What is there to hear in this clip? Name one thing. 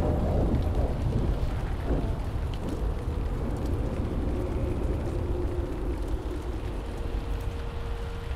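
Footsteps crunch over dry ground.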